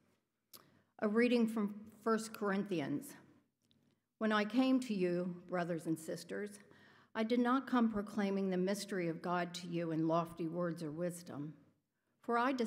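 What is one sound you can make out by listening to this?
An adult woman reads aloud calmly into a microphone.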